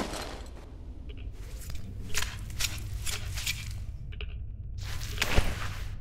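A creature snarls and growls up close.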